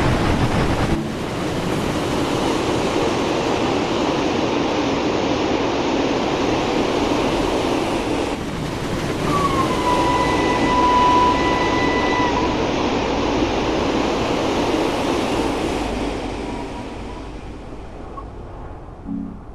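A train rumbles past on the tracks and slowly fades into the distance.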